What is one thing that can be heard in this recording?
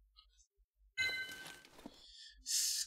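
A bright game chime rings as an item is picked up.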